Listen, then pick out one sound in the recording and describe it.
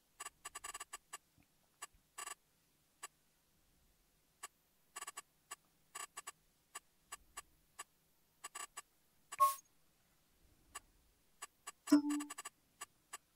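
Short electronic menu clicks tick in quick bursts.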